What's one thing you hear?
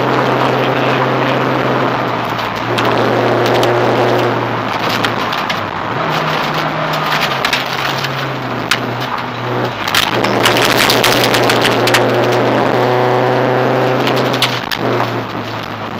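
A rally car engine roars loudly, its pitch rising and falling with the gear changes.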